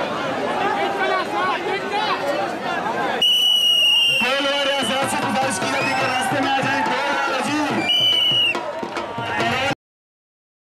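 A large outdoor crowd chatters and shouts.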